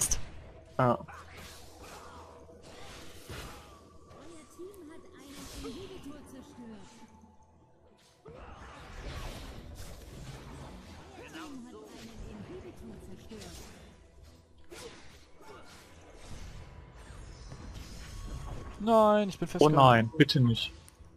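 Magic spells zap and crackle in a fantasy battle game.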